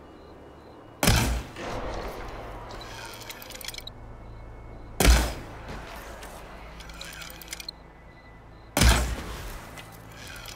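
A bow releases an arrow with a sharp twang and whoosh.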